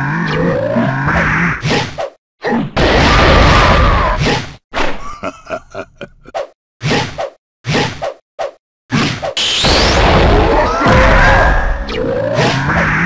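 Energy blasts whoosh and roar loudly.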